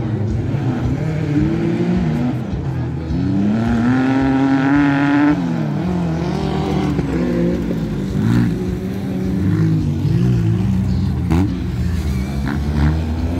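A racing buggy engine revs hard and roars, rising and falling in pitch.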